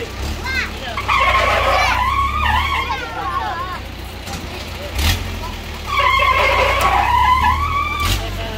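A fairground ride rumbles and whooshes as it swings.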